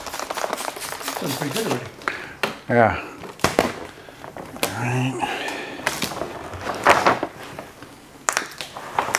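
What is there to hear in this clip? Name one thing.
Plastic film crinkles and rustles as it is handled.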